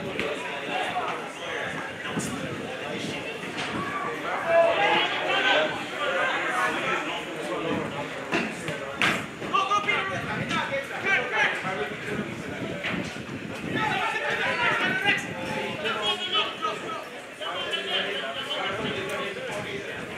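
Players shout to each other across an open field.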